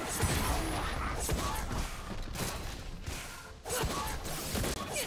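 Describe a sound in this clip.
Blows land with sharp thuds.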